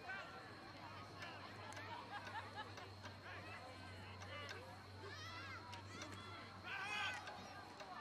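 Young male players shout and call out across an open field.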